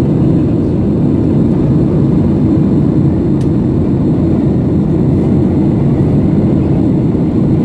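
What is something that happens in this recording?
A jet airliner's engines roar steadily in the cabin.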